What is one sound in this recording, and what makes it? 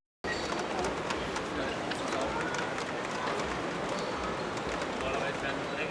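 Model train wagons roll and clatter along a track.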